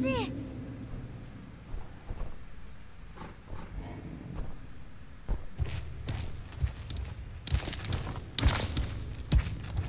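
A large beast's footsteps thud on stone.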